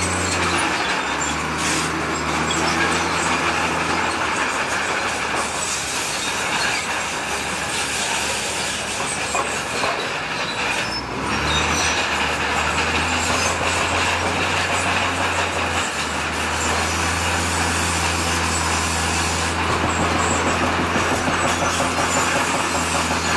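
A bulldozer engine rumbles steadily nearby.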